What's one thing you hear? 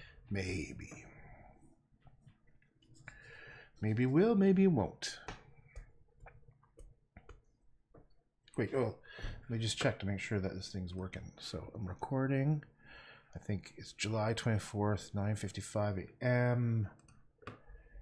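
A man talks calmly into a nearby microphone.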